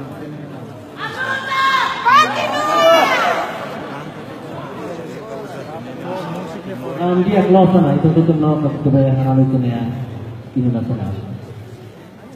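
A crowd of voices chants and sings loudly together.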